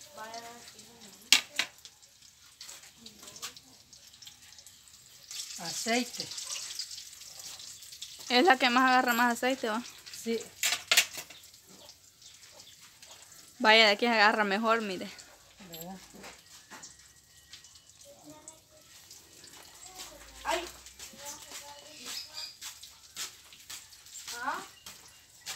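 Oil sizzles and crackles in a frying pan.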